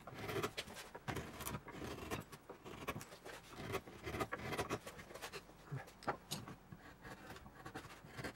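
A mallet taps a chisel handle.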